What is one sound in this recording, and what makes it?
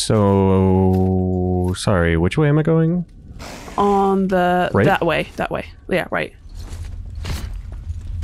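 Heavy footsteps crunch on snow.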